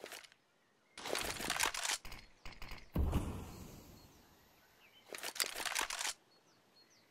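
Gunshots crack nearby and echo briefly.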